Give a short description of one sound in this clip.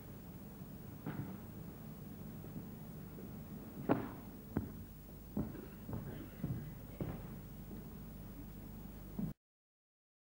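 Thuds and knocks sound on a wooden stage in a large hall.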